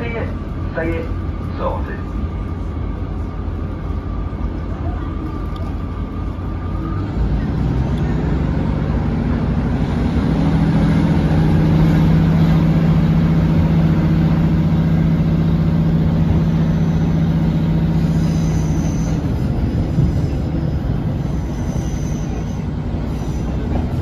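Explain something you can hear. A train rumbles along the tracks, heard from inside a carriage.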